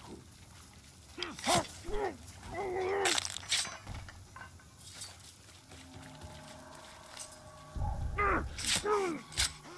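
Creatures growl and snarl loudly.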